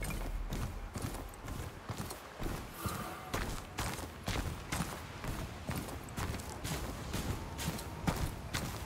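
Footsteps crunch quickly on sand and stone.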